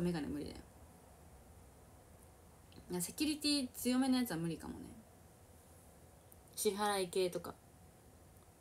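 A young woman speaks softly and casually close by, in short bursts.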